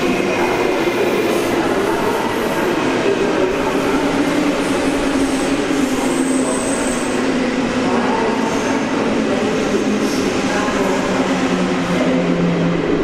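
A high-speed train rumbles and hums as it slowly pulls away through a large echoing station hall.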